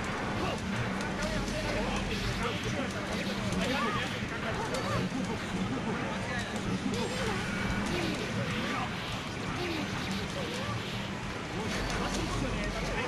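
Fighting game punches and blasts crack and whoosh in quick bursts.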